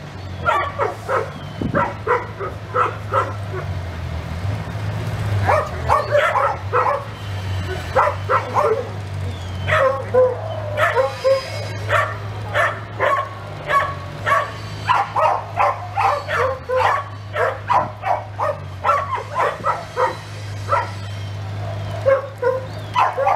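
A woman speaks and calls out nearby, outdoors.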